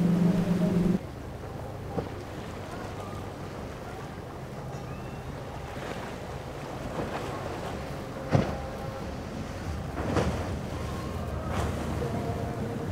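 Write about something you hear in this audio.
An outboard motor hums and revs as a small boat pushes through rough water.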